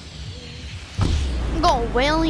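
Wind rushes loudly as a game character drops from the sky.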